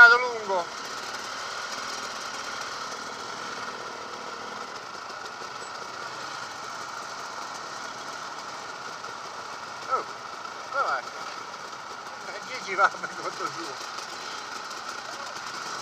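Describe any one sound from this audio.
Dirt bike engines idle nearby with a steady rumble.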